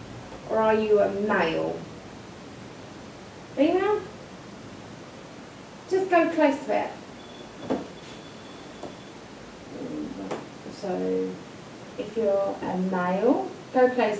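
A man talks quietly nearby.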